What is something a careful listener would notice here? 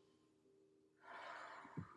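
A woman breathes out slowly and softly.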